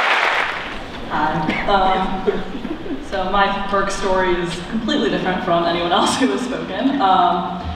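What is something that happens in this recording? A young woman speaks cheerfully into a microphone in an echoing hall.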